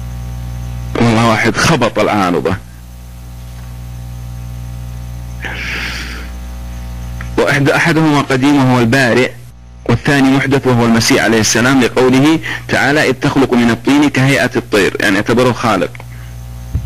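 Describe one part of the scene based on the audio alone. A man speaks with animation through a microphone.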